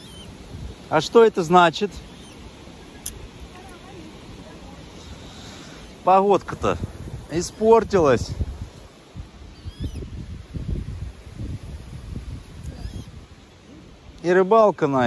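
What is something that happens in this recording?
Ducks call loudly across open water.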